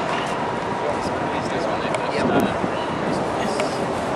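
Adult men talk casually nearby.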